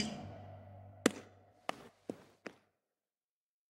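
A ball bounces several times on a hard floor, each bounce quieter.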